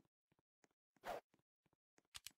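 A magical burst whooshes with a crackle.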